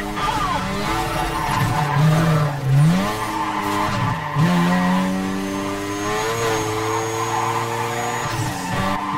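A racing car engine roars loudly, revving up and dropping sharply with each gear change.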